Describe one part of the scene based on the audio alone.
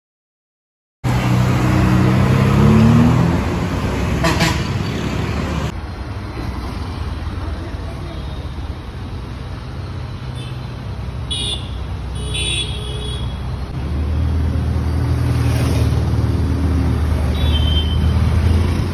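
A sports car engine rumbles deeply and revs up.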